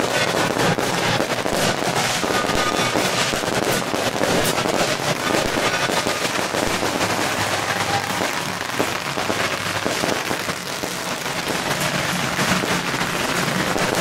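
Firecrackers crackle and pop nearby.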